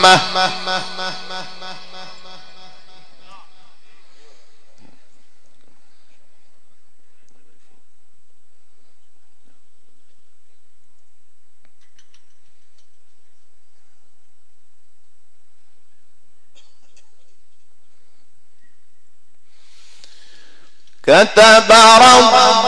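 A young man chants melodically into a microphone, heard through loudspeakers in a reverberant space.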